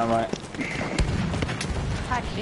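Explosions thud in the distance.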